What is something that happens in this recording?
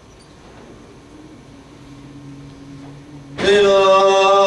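A men's choir hums a low, steady note.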